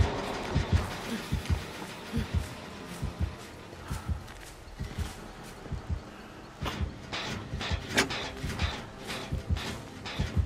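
Footsteps thud quickly through grass.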